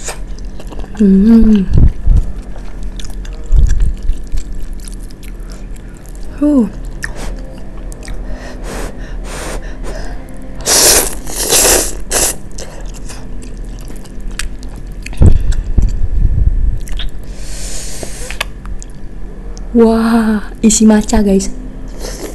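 A young woman speaks softly and briefly close by.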